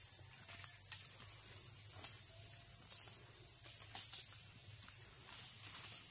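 Leaves and branches rustle as a person pushes through brush.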